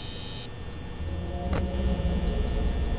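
Loud crackling static hisses.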